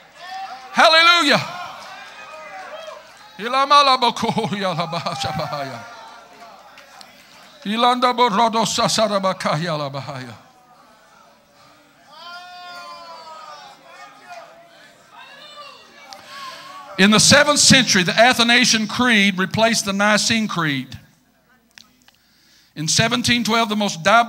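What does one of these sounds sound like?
A middle-aged man preaches with animation through a microphone in a large echoing hall.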